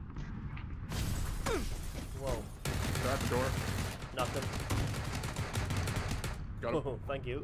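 Rapid gunfire rattles loudly at close range.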